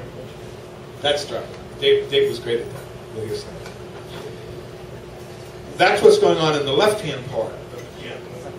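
A man speaks through a microphone over a loudspeaker, with pauses.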